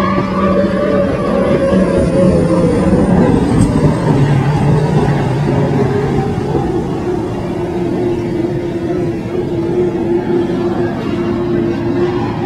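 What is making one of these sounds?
A racing powerboat engine roars at high speed across the water.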